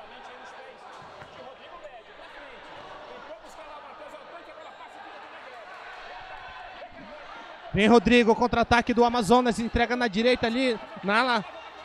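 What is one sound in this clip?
A crowd murmurs in a large indoor hall.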